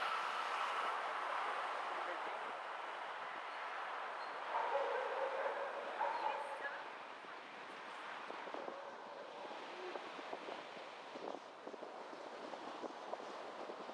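Tyres roll steadily on a city street from inside a moving car.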